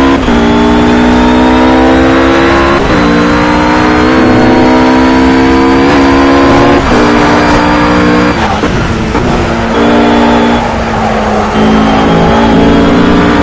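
A GT3 racing car engine screams at high revs, shifting up through the gears.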